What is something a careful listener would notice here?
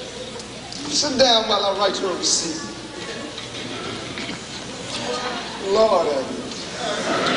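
A woman speaks loudly and expressively in a large hall.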